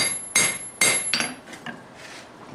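A hammer strikes hot metal on an anvil with ringing clangs.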